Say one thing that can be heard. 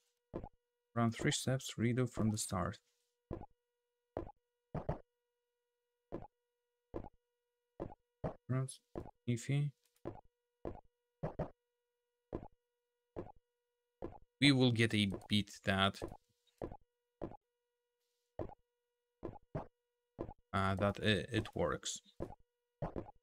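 A man speaks casually and close to a microphone, in short bursts.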